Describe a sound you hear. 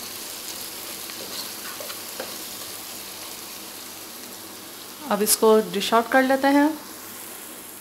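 A spatula scrapes and stirs food in a pan.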